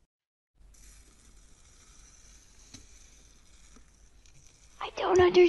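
Fingers press and squish soft slime with faint crackles.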